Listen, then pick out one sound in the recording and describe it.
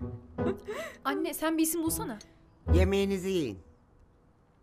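A woman speaks in a calm voice close by.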